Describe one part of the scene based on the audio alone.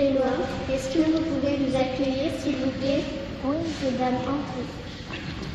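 A young girl speaks into a microphone in a large echoing hall.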